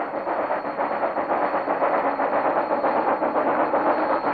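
Train wheels clatter and squeal on the rails as the train passes close by.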